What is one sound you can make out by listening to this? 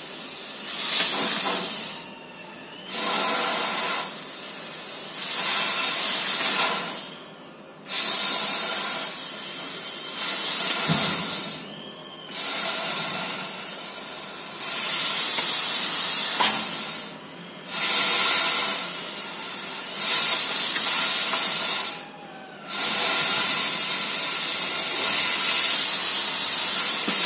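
A machine's cutting head whirs as it moves along its rails.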